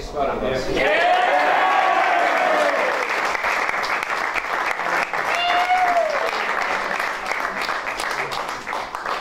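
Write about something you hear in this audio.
A group of teenage boys cheer and shout loudly.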